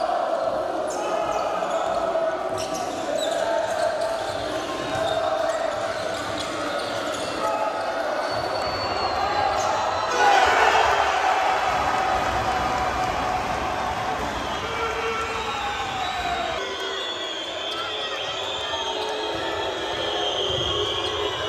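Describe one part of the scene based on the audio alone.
A large crowd cheers and chants in a big echoing hall.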